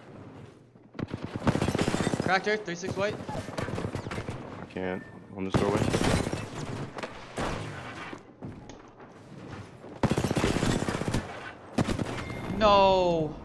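Gunfire from a video game rattles in rapid bursts.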